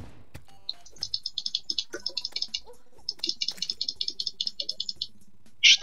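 A video game sword swings with quick, bright whooshing blips in rapid succession.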